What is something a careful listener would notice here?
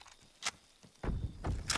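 Footsteps clump up wooden stairs.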